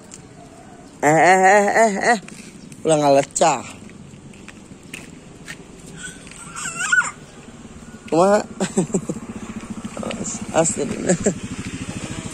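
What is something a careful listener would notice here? A toddler babbles and calls out loudly nearby.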